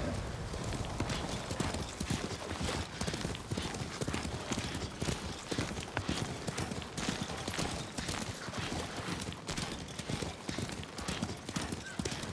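A horse gallops with rapid, heavy hoofbeats.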